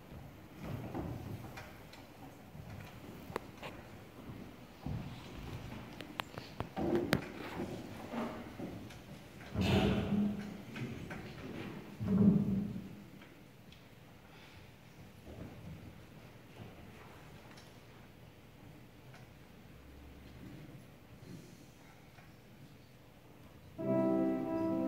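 Children chatter and murmur quietly in an echoing hall.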